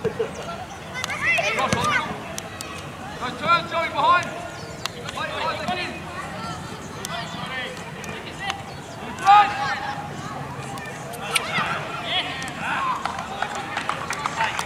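Young female players shout to each other across an open field.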